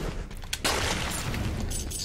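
Sword blows and blasts crackle in a fast fight.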